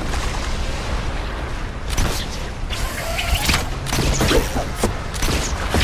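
Water splashes as someone wades through it.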